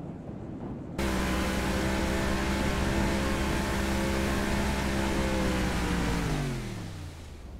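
A speedboat engine roars at speed, then its pitch drops.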